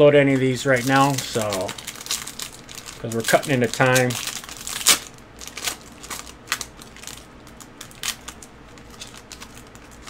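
A foil card wrapper crinkles and tears.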